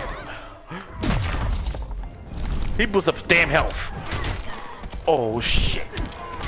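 Blows and bursts of energy crash in a video game fight.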